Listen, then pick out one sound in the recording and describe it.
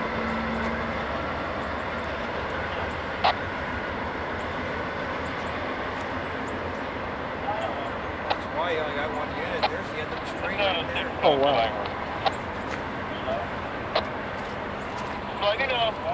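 Train wheels clank and squeal over rail joints.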